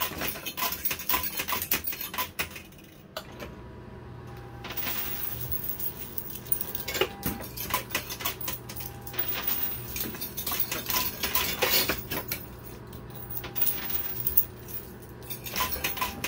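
Coins clatter and clink as they drop onto a metal shelf.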